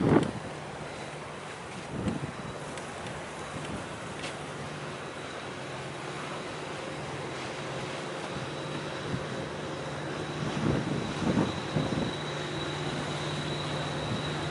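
A ship's engine hums low and steady in the distance.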